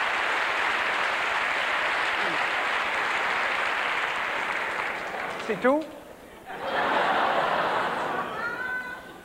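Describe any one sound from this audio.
An audience applauds and cheers in a large hall.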